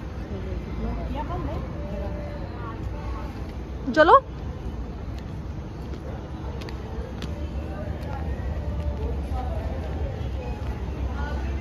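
An escalator hums steadily.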